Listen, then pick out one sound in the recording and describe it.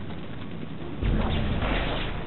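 A gun fires with a sharp, booming blast.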